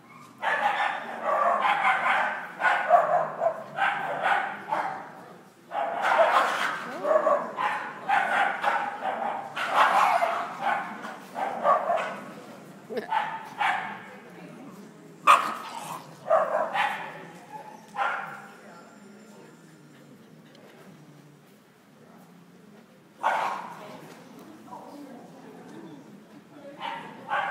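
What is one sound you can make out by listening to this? A woman talks close by, in a large echoing hall.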